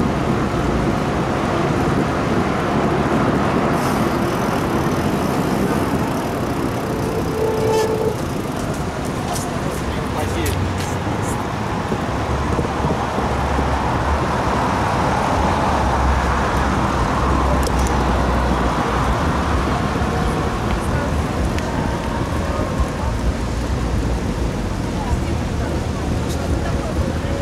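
City traffic hums steadily nearby.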